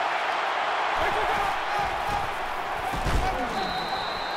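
Football players collide with thudding impacts.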